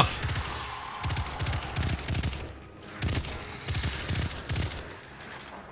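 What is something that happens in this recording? A scoped rifle fires a series of shots.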